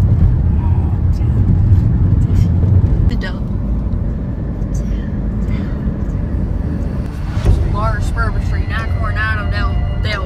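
A car engine and tyres rumble steadily on a road.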